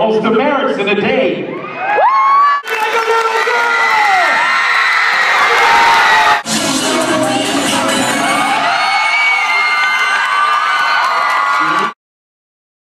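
A large crowd cheers and screams loudly in an echoing gym.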